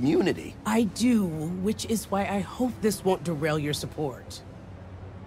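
A woman answers calmly.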